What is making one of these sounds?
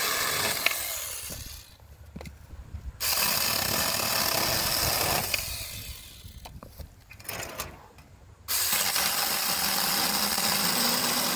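A small electric chainsaw whirs loudly in bursts, cutting through a dry branch.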